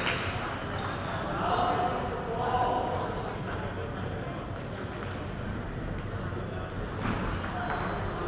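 Men and women chatter quietly in the background.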